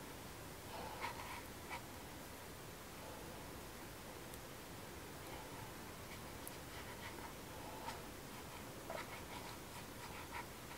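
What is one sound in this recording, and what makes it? A paintbrush dabs and scratches softly on paper.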